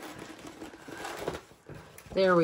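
A large sheet of stiff paper rustles and crinkles as it is unrolled.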